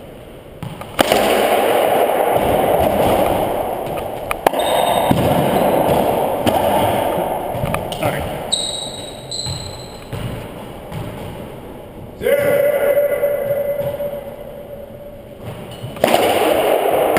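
A racquetball smacks off the walls, echoing through a large hard-walled court.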